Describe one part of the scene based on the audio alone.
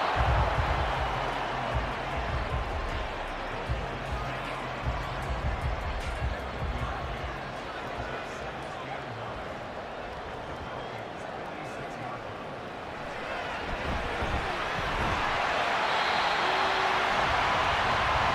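A large stadium crowd roars steadily, swelling louder toward the end.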